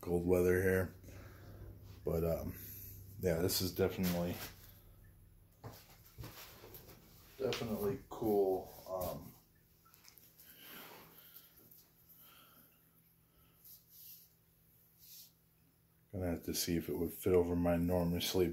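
A man talks calmly and close by, with pauses.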